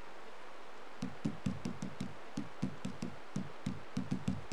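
Game menu clicks tick quickly one after another.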